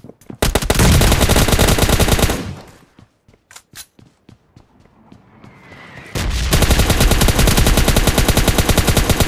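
Rapid gunfire rattles in loud, fast bursts.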